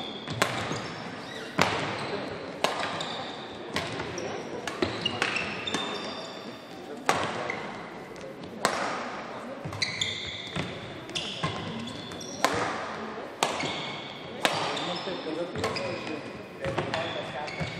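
Badminton rackets smack a shuttlecock back and forth in a rally.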